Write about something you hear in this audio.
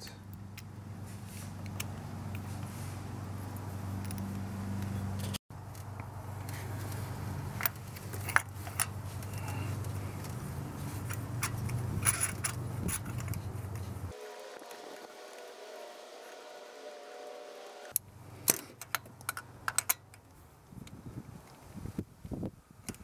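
Small metal parts click and scrape together.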